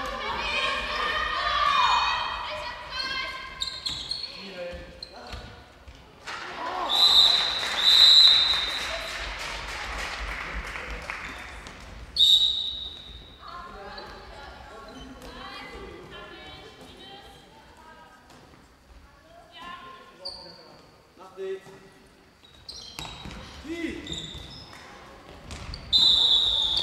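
A handball bounces on the floor.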